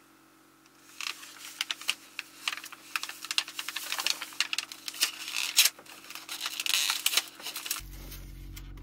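A paper wrapper crinkles and rustles as it is unwrapped.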